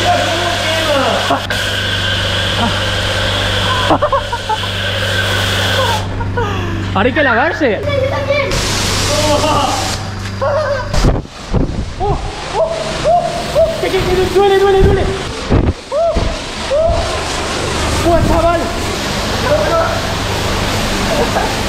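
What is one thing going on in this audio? A pressure washer sprays water with a loud steady hiss.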